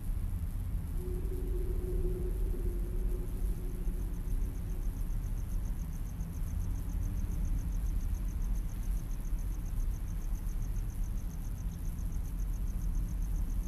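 Wind rumbles outdoors through trees.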